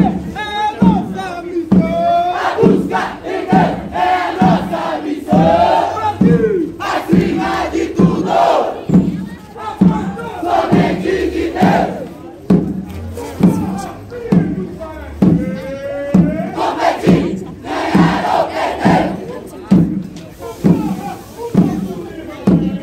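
A marching band's bass drums beat a steady rhythm.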